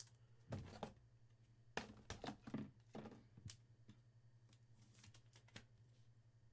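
A plastic card case clicks and taps as it is handled.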